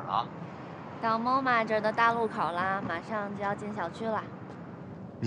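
A young woman talks cheerfully on a phone, close by.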